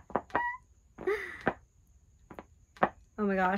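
A young woman laughs and speaks close by.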